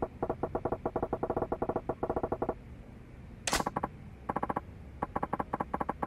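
Rapid electronic blips tick in quick bursts.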